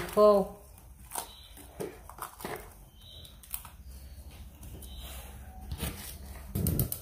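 Plastic wrap crinkles under fingers.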